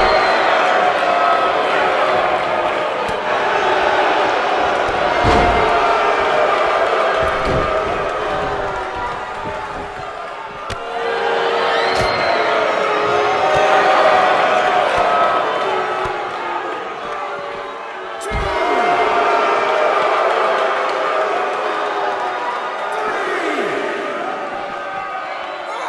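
A large crowd cheers and shouts loudly in an echoing arena.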